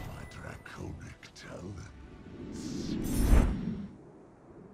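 A triumphant fanfare swells and rings out.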